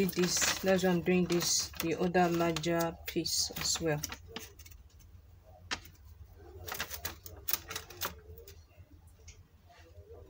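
Paper rustles and crinkles as it is folded.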